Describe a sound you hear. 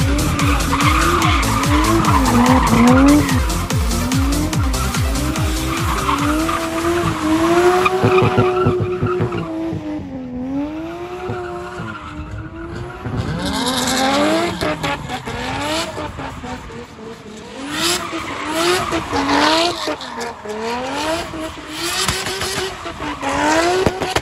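Tyres screech loudly on tarmac.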